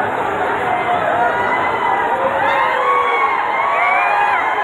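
Several men shout slogans together, growing louder.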